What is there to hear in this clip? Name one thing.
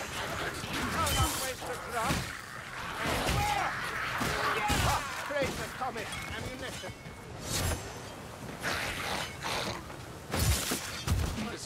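A heavy hammer thuds into creatures in hard, quick blows.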